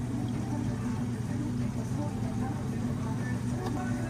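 Steamed milk pours into a mug.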